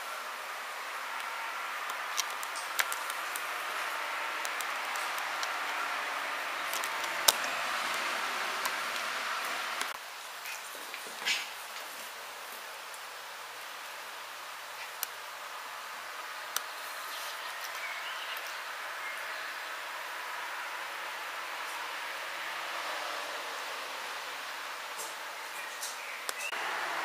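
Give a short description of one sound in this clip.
Puppies' paws patter and click on a hard floor.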